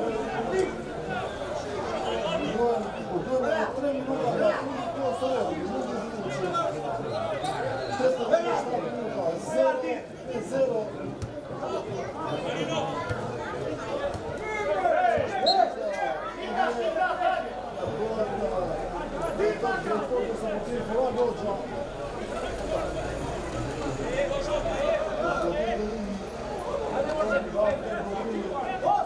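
Men shout to each other across an open pitch outdoors.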